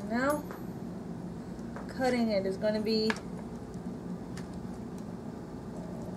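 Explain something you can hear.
A pizza cutter rolls and crunches through a baked crust.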